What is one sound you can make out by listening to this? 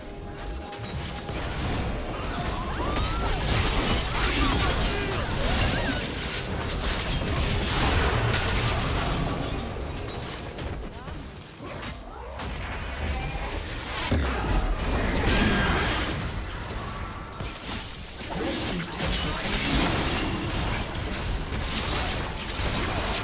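Magic spells burst and crackle in a video game battle.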